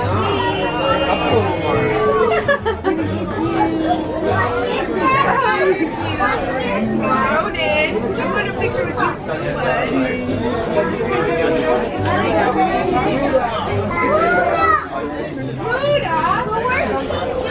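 A crowd of adults and children chatter all around.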